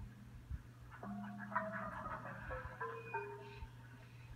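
Music with a few plucked, falling notes plays through a television's speaker.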